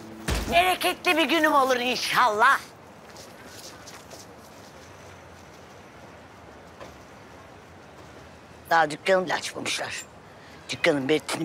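A woman exclaims loudly and dramatically, close by.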